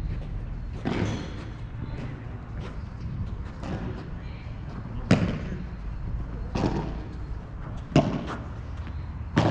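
Rackets strike a ball with sharp pops.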